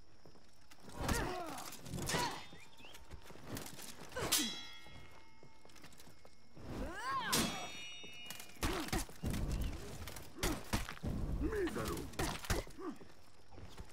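Metal blades clash and ring out in sharp bursts.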